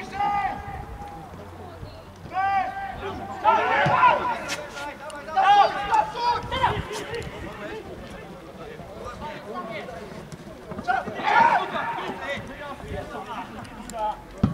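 Young men shout to each other from across an open field outdoors.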